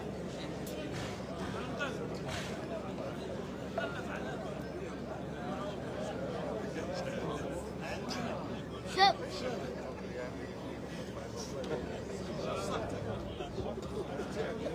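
Men talk outdoors.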